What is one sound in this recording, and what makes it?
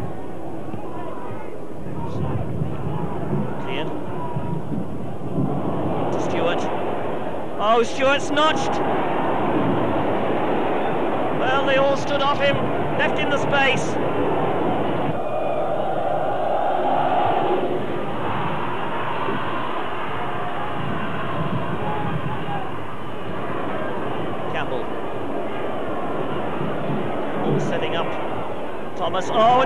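A large stadium crowd roars and cheers throughout.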